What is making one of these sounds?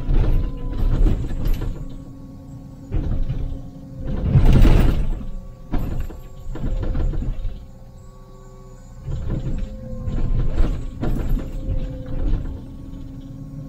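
An excavator bucket scrapes and thuds against soil and rubble.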